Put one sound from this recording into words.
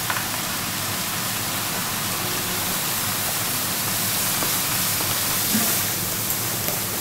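Liquid nitrogen hisses as it boils off.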